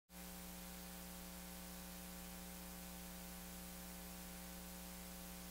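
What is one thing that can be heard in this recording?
A vinyl record hisses softly as it spins on a turntable.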